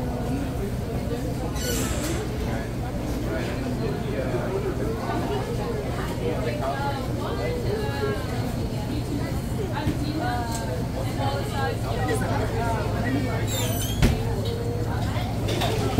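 Several people chatter in a busy room.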